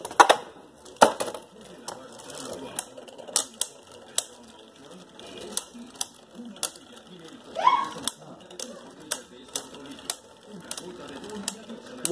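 Spinning tops whir and knock against each other repeatedly.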